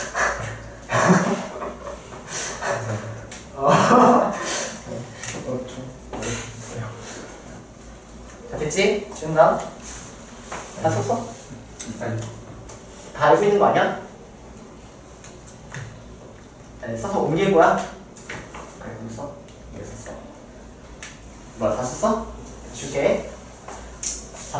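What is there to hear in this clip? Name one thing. A young man speaks calmly and clearly through a close microphone, in pauses.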